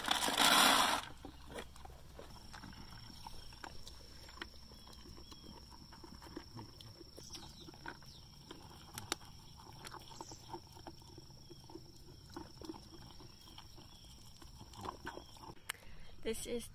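Goats munch and crunch feed.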